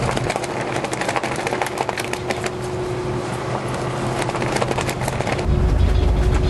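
A flag flaps and snaps in strong wind.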